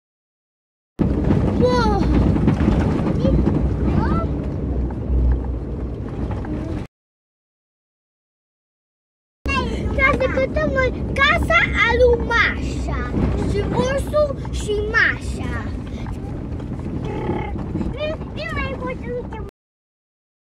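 Men talk and laugh inside a car, close by.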